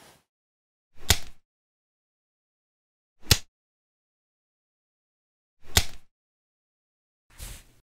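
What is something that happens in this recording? Nail clippers snap sharply, again and again.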